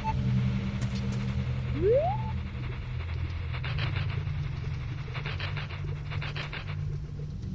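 Soft, low music drones steadily.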